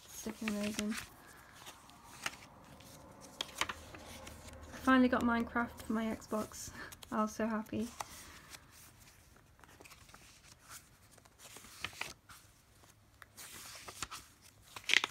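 Paper pages rustle and flip as a notebook is leafed through.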